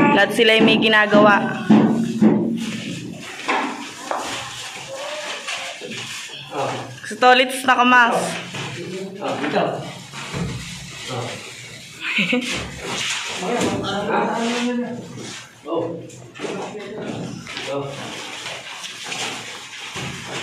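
Men talk and call out nearby, echoing off bare concrete walls.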